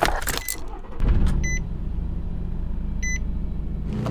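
A van engine starts and settles into a steady, low idle.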